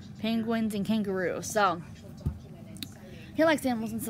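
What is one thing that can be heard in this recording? A hardcover book is turned over and set down on a carpet.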